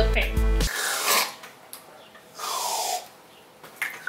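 Whipped cream sprays from a can in short hissing bursts.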